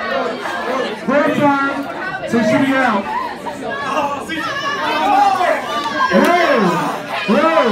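A young man shouts with excitement nearby.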